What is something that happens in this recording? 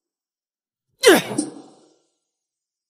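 A young woman cries out in pain, close by.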